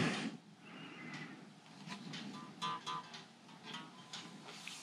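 Unplugged electric guitar strings are plucked softly.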